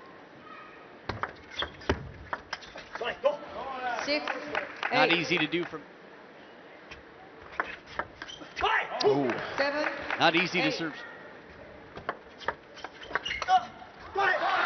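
A ping-pong ball clicks quickly back and forth off paddles and a table.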